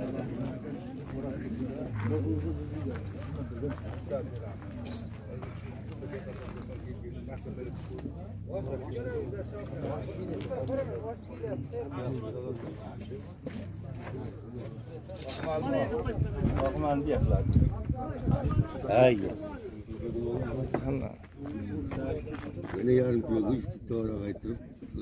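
Several men talk and chatter nearby outdoors.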